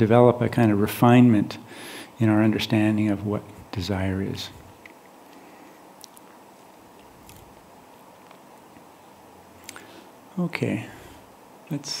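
An elderly man speaks calmly and slowly into a nearby microphone, with long pauses.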